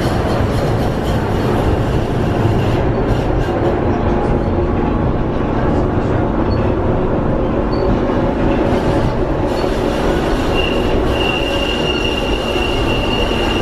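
A tram rumbles and rattles steadily along its rails.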